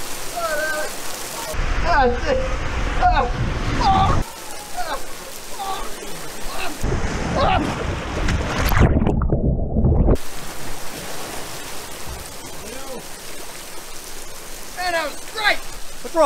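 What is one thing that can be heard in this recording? Water rushes steadily down a slide.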